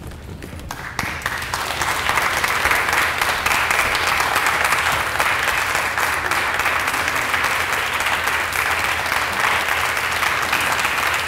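A large audience claps and applauds loudly.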